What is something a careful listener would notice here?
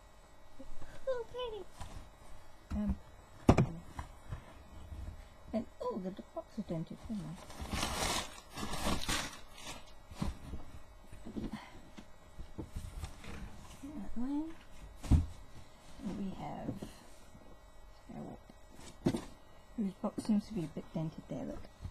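Cardboard packaging scrapes and knocks as it is handled.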